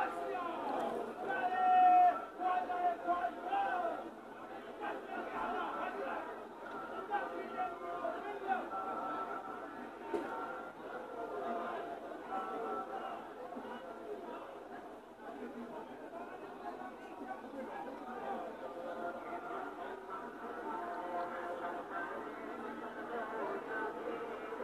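A large crowd of men chants together outdoors, heard from a distance through a window.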